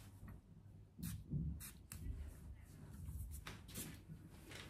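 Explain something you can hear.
A spray bottle hisses in short bursts close by.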